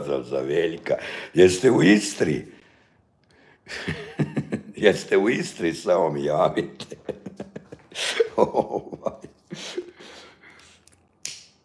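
A middle-aged man talks with animation, close to a phone microphone.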